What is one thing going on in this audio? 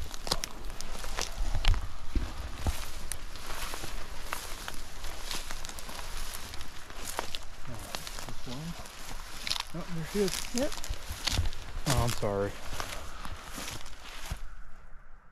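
Dry grass rustles and crackles underfoot as someone walks.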